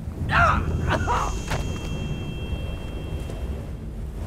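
A body thuds onto a hard floor.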